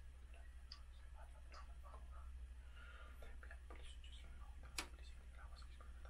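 A phone is tapped and handled up close, with small clicks.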